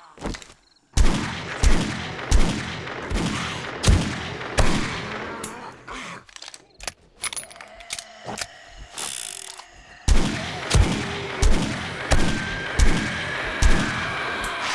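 A rifle fires single shots, each with a booming echo.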